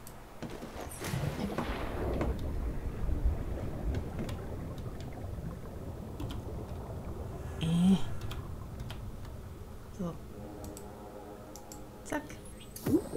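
Water rushes and bubbles underwater.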